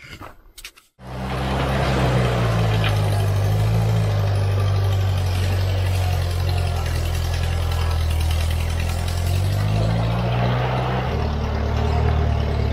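A tractor engine chugs and revs nearby.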